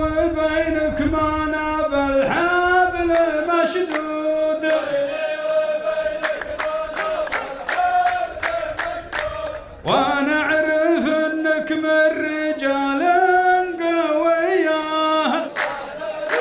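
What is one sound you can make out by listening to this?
A man sings loudly into a microphone with a steady, drawn-out voice.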